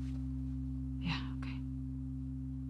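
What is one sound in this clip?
A second young woman answers briefly and softly, close by.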